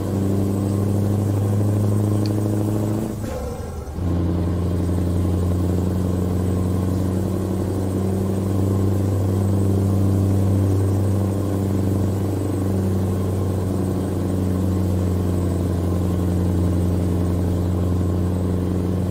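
A truck engine drones low and steady, dropping briefly during a gear change.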